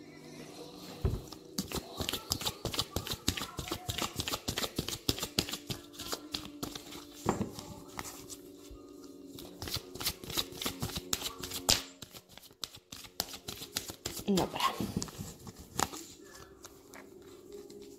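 A hand rustles and taps close by.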